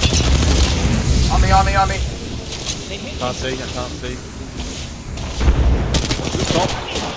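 A rifle fires rapid shots at close range.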